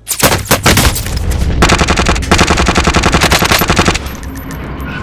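Rifle shots fire in rapid bursts close by.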